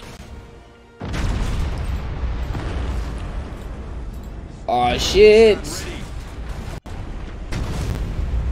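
Explosions rumble and roar loudly.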